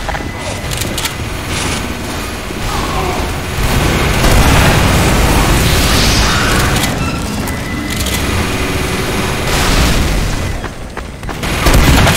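Gunshots fire rapidly in a game.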